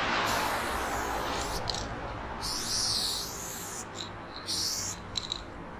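A spray can hisses in short bursts close by.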